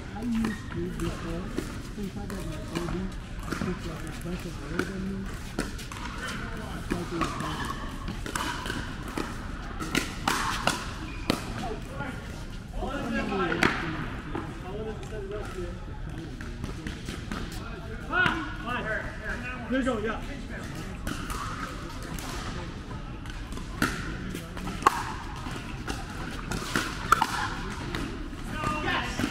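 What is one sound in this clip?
Paddles strike a plastic ball with sharp pops, echoing in a large indoor hall.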